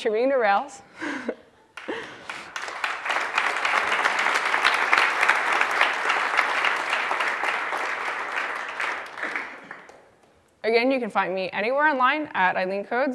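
A young woman speaks into a microphone in a large hall.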